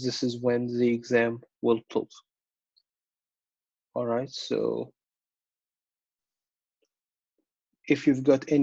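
A man lectures calmly over an online call, speaking in short phrases with pauses.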